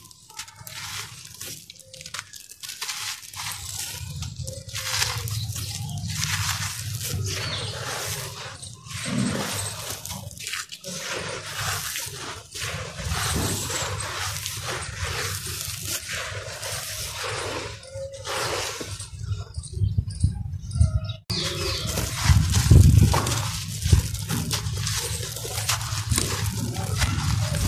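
Loose grit pours and patters onto the ground.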